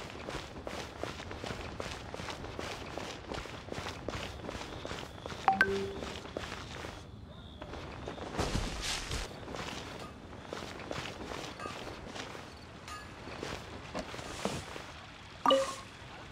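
Quick footsteps run on hard ground.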